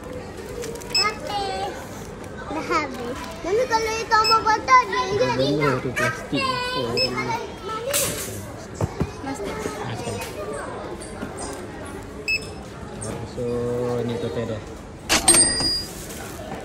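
A barcode scanner beeps a few times.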